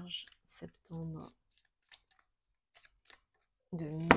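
Cards rustle and slap as they are shuffled by hand.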